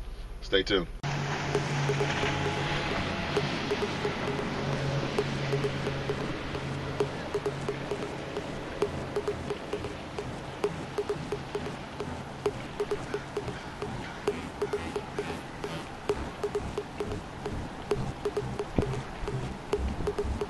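Water rushes steadily in a river, outdoors.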